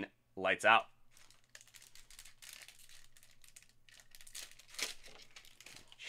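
Foil card packs crinkle and tear.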